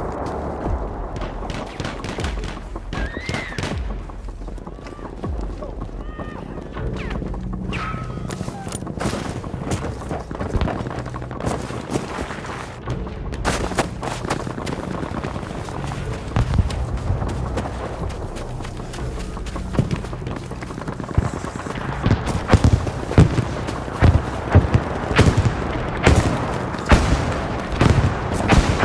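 Gunshots crack and boom repeatedly, some near and some far off.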